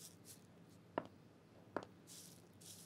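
A woman's heels knock on a hard floor as she walks.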